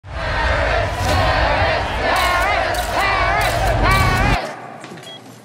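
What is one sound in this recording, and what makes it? A crowd cheers and chants loudly in a large hall.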